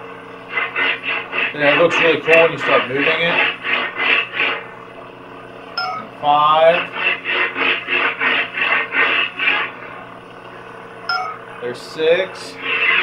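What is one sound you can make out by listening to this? A toy light sword hums and whooshes in quick, pulsing bursts as it is swung.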